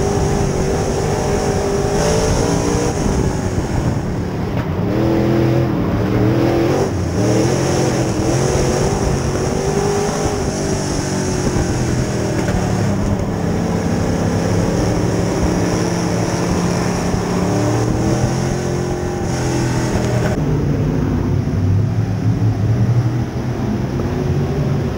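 A race car engine roars loudly up close, revving up and down.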